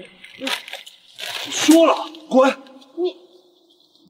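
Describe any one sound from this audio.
A young man speaks sharply and angrily, close by.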